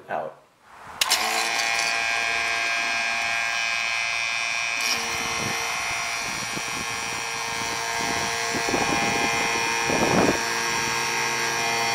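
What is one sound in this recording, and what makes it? A vacuum pump hums steadily.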